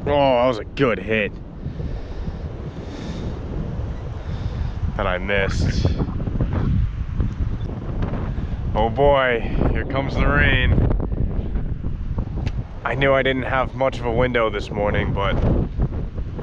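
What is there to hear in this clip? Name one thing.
Wind gusts and rumbles steadily outdoors.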